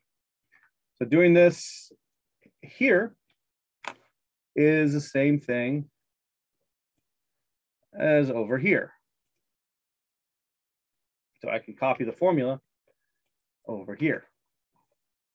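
A man speaks calmly in short phrases, heard through a microphone.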